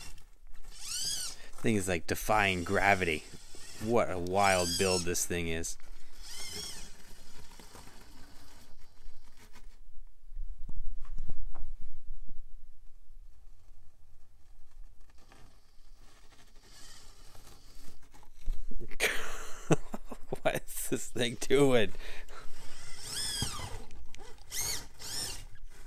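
Rubber tyres scrape and grind on rough rock.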